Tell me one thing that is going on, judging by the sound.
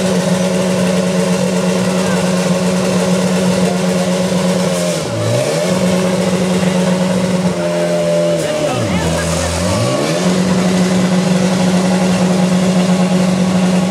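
A portable pump engine runs loudly outdoors, its pitch dipping briefly twice.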